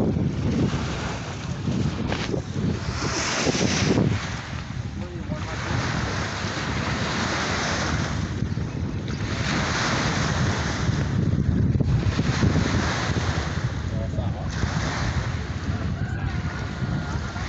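Strong wind blusters across open water outdoors.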